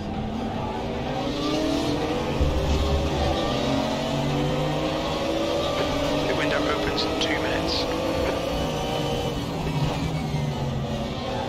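A racing car engine roars loudly and climbs in pitch as it revs up through the gears.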